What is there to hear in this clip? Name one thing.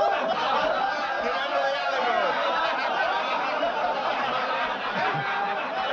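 An elderly man laughs loudly and heartily.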